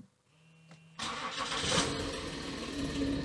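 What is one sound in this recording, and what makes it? A car engine starts and idles.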